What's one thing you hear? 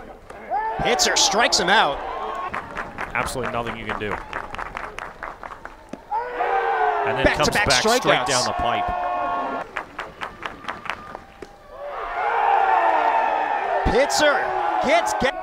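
A crowd cheers and whistles in bursts outdoors.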